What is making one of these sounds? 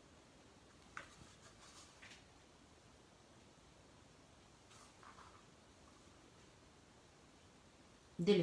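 A paintbrush brushes and taps softly against a painted wooden board.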